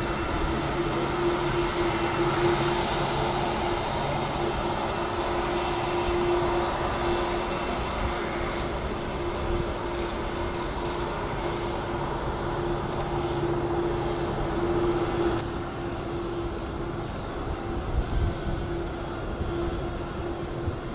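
A large jet airliner's engines whine and roar steadily as it taxis past.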